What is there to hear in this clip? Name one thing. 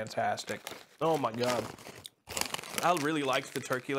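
A crisp bag crinkles as a hand reaches inside.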